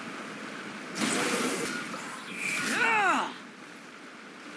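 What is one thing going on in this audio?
Magical blasts whoosh and crash in a short fight.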